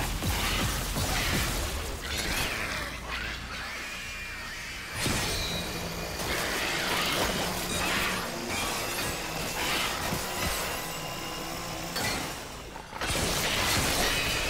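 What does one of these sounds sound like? Flesh splatters wetly as a creature is cut apart.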